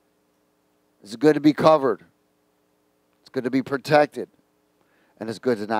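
A middle-aged man speaks calmly through a headset microphone, in short phrases with pauses.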